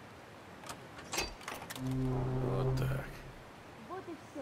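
A metal door is pried open with a creak and a scrape.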